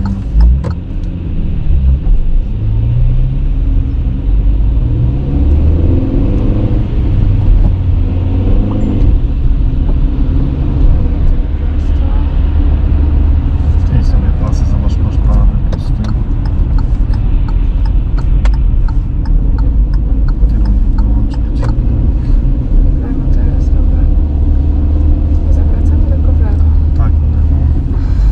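A car engine hums steadily from inside the car as it drives.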